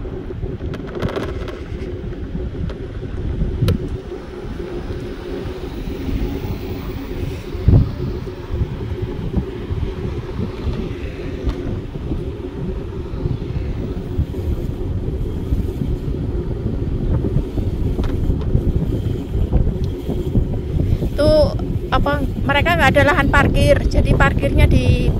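Wind rumbles and buffets against the microphone while riding outdoors.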